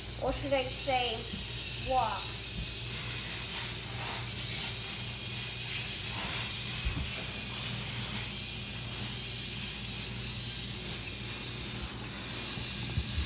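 Small servo motors whir in steady, repeating bursts.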